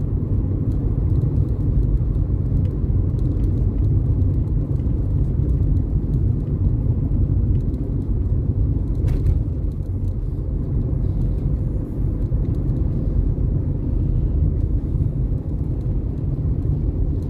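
A car's engine hums steadily with a low road rumble from inside the cabin.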